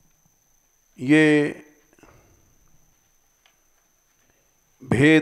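An elderly man chants drawn-out notes through a microphone, with quiet pauses in between.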